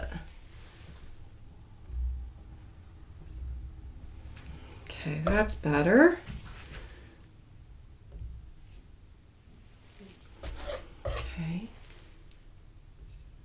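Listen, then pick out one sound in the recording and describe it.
A paintbrush softly dabs and strokes on canvas.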